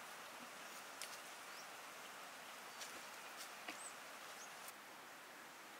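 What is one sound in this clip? Twigs and leaves crackle under a cow's hooves.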